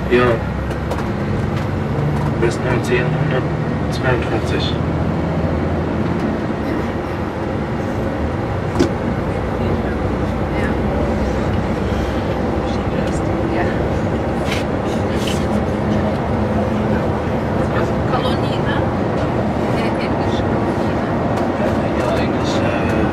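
A vehicle's engine hums steadily from inside the cabin as it drives along a road.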